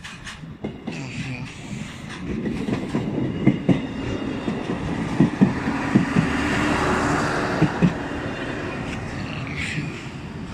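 A train rumbles past close by, wheels clattering on the rails.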